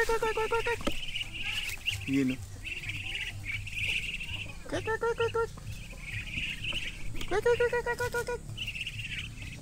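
Ducks quack close by outdoors.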